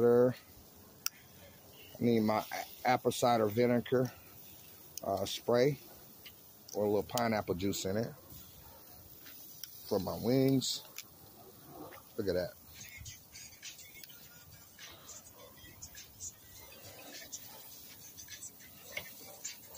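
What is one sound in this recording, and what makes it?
Metal tongs clink against a grill grate.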